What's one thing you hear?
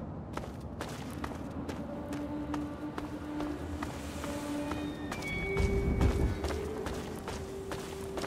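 Footsteps crunch over rubble outdoors.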